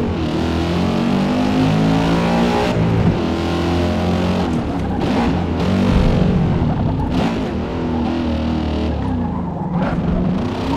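A sports car engine in a racing game revs up and down through gear changes.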